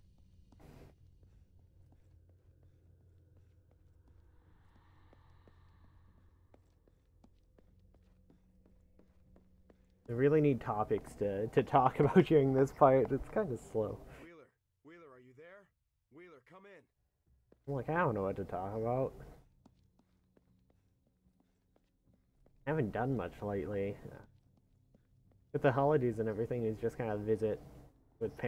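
Footsteps run on hard pavement.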